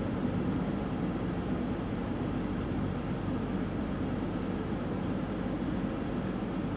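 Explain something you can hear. A car engine hums steadily as the car drives.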